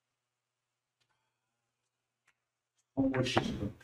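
Billiard balls click against each other and the cushions.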